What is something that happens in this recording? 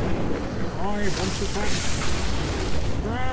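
Flames burst with a whoosh.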